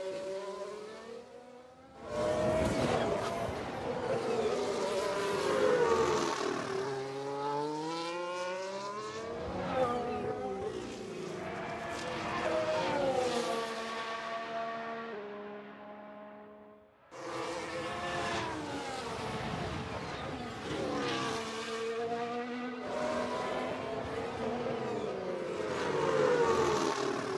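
Racing car engines roar and whine, rising in pitch and dropping as gears shift.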